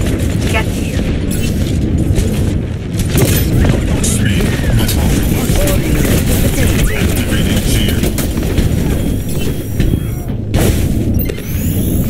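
A heavy metal ball rumbles as it rolls along.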